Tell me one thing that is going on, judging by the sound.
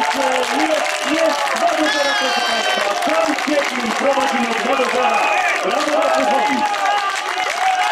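Footballers shout and cheer in celebration outdoors.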